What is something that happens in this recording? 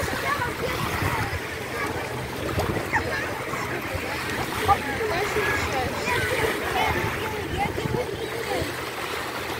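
Women talk nearby.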